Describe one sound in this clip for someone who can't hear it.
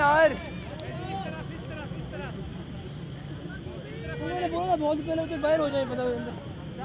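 Men talk and call out to each other outdoors at a distance.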